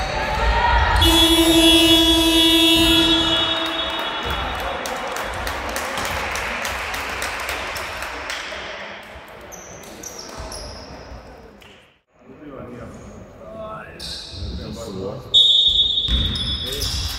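A referee's whistle blows sharply in an echoing hall.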